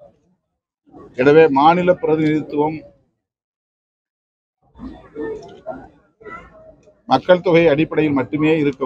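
A middle-aged man speaks calmly and firmly into a nearby microphone, with pauses.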